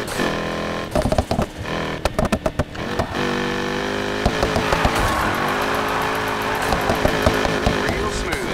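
Exhaust backfires pop and crackle.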